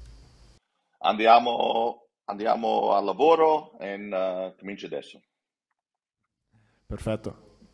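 A middle-aged man speaks with animation over an online call.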